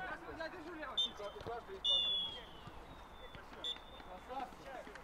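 A referee's whistle blows in short, sharp blasts.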